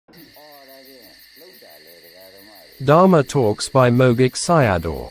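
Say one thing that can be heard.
An elderly man speaks, quietly at first and then much louder and with animation.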